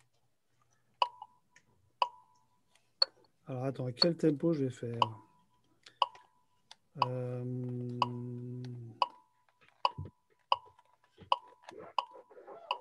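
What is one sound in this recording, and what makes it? A guitar is plucked, single notes ringing briefly.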